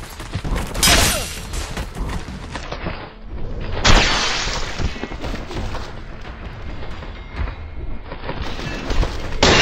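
A blade slashes and strikes flesh with wet, heavy thuds.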